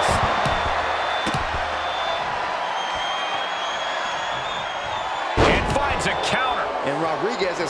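A large crowd roars and cheers in an arena.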